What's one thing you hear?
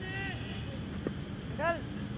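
A cricket bat sharply strikes a ball.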